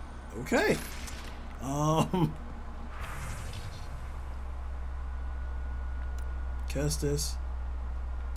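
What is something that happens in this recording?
A young man speaks in short bursts into a close microphone.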